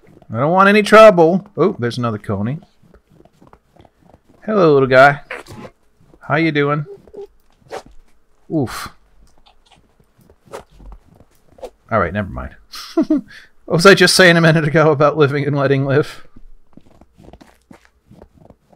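Footsteps crunch softly in snow.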